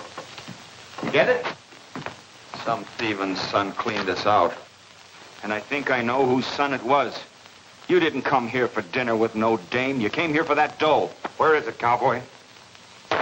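An older man speaks in a low, firm voice.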